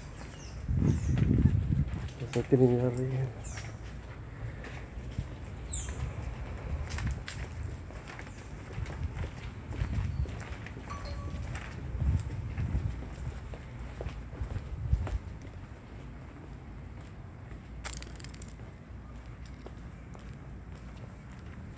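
Wind gusts rumble outdoors.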